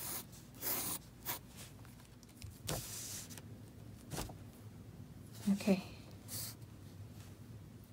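A pencil scratches softly across paper.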